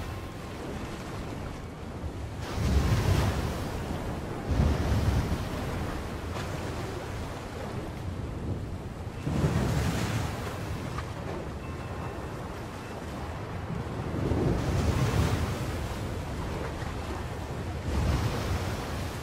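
Heavy waves surge and crash in a roaring storm sea.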